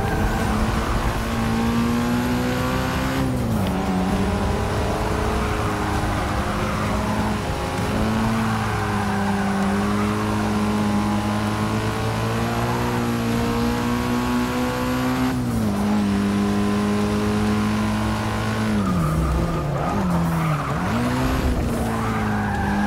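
A racing car engine roars loudly and steadily, dropping in pitch at each gear change and climbing again.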